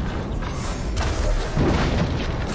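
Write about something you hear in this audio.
An explosion booms and flames crackle loudly.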